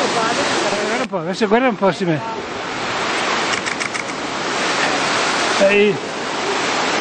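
An elderly man talks loudly close by.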